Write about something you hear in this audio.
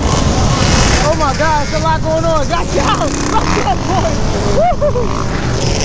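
Dirt bike engines rev loudly, rising and falling in pitch.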